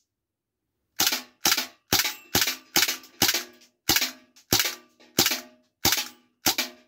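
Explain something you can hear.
A pistol fires a quick series of sharp shots, each ringing briefly.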